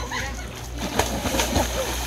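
A person splashes into water.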